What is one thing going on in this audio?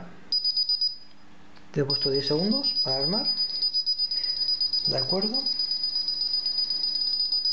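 An alarm keypad beeps rapidly and steadily in a high pitch.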